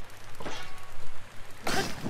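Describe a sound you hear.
A fire ignites with a crackling burst.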